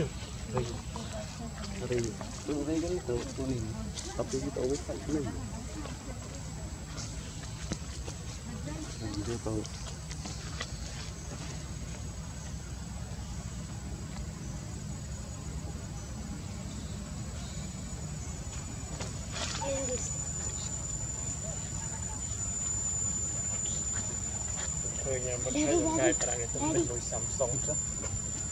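A baby macaque whimpers and squeaks.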